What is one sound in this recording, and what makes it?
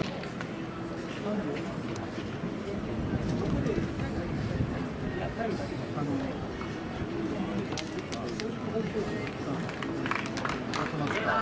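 A crowd of spectators murmurs softly outdoors.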